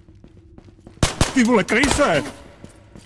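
A gun fires loudly in a few quick shots.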